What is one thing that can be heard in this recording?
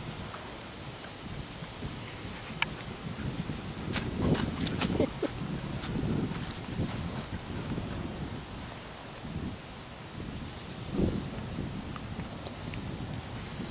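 A dog sniffs and snuffles close by.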